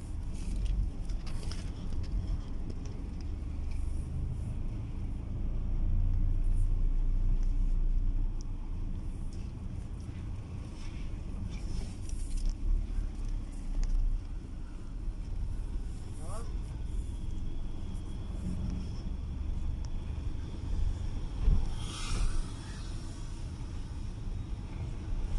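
A car engine rumbles steadily from inside the car as it drives.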